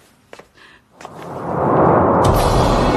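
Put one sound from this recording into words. A man drops heavily to his knees on the floor.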